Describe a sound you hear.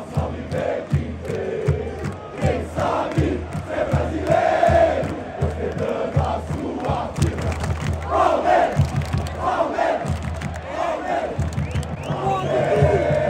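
A large crowd chants and cheers across an open stadium.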